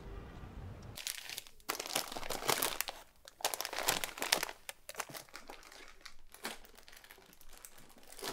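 Plastic bags crinkle and rustle as someone rummages through them.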